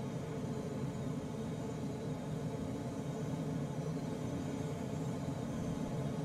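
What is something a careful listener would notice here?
Air rushes and roars steadily past a small aircraft's cockpit in flight.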